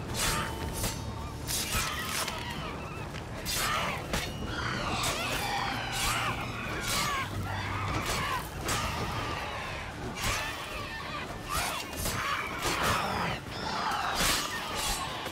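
Creatures screech and shriek during the fight.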